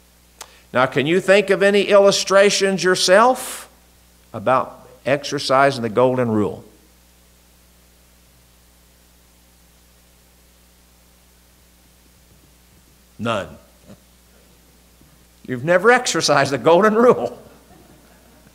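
An elderly man speaks calmly into a microphone, with long pauses.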